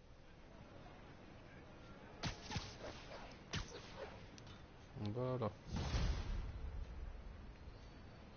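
Game sound effects of swinging and landing thud and whoosh.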